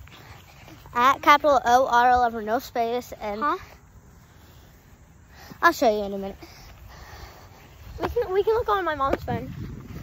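A young girl speaks with animation close to the microphone.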